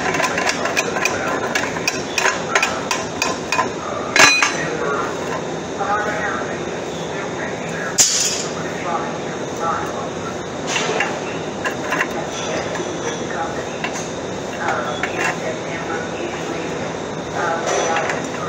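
Metal parts clink and clatter on a metal bench.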